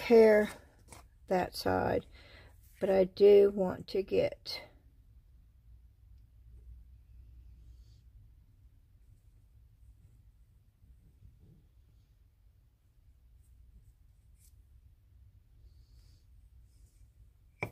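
Paper rustles and slides softly on a table.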